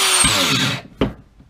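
A tool is set down with a knock.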